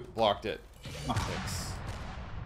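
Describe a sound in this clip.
An explosion booms in a game.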